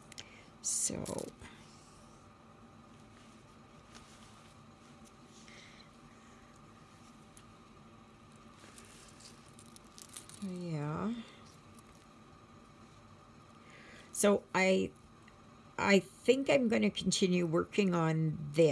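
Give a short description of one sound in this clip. A needle and thread are pulled through stiff fabric with a soft rasp.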